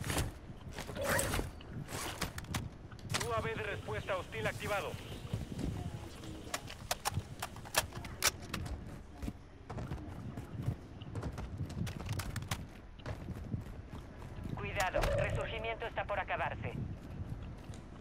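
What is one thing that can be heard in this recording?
Footsteps thud and crunch over grass and gravel.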